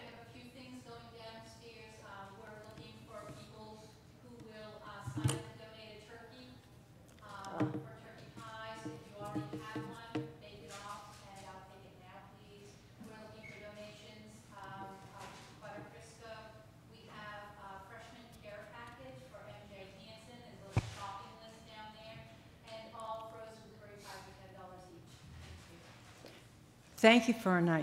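An elderly woman speaks calmly at a distance in a room with a slight echo.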